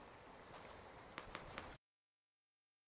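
Footsteps splash through shallow water.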